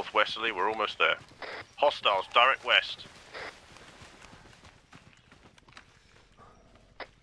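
Footsteps rustle through tall grass and undergrowth.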